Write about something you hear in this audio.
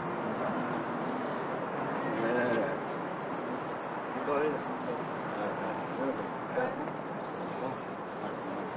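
A man talks.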